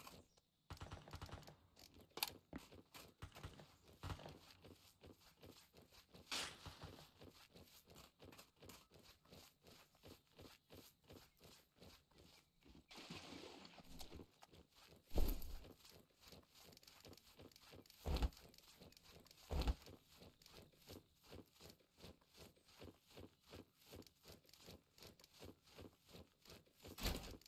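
Footsteps rustle through tall grass at a steady walking pace.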